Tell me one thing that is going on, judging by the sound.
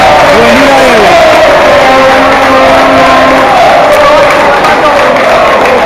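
A large crowd of fans chants and sings loudly outdoors.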